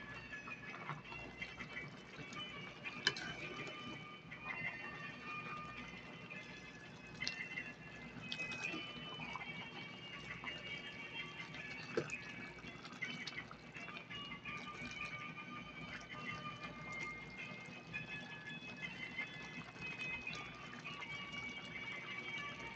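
A metal ladle scrapes and knocks against a pot.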